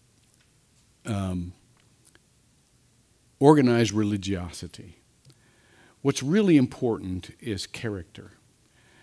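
An older man speaks slowly and deliberately into a microphone, with pauses.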